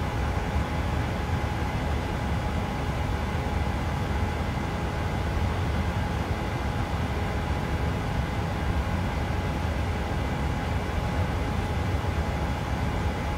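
Jet engines roar in a steady, low rumble.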